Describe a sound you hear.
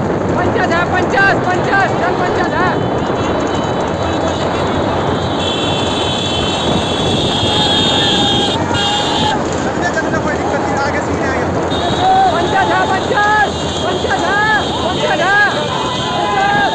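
Cart wheels rumble and rattle over a rough road.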